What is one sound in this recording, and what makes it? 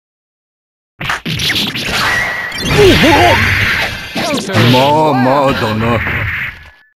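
Fiery blasts whoosh and explode.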